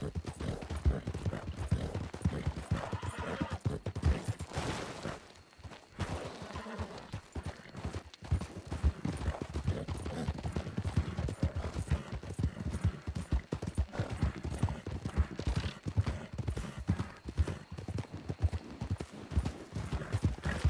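Horse hooves clop steadily on a dirt trail.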